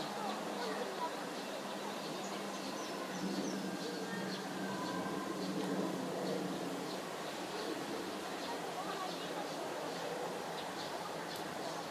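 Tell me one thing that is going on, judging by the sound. A chick peeps in short high calls.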